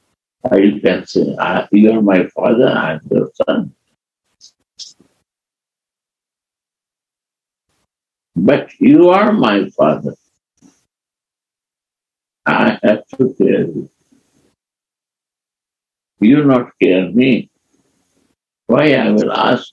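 An elderly man speaks slowly and calmly in short phrases, heard close through a microphone.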